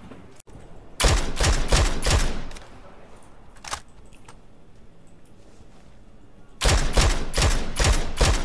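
Rifle shots crack in rapid bursts, close by.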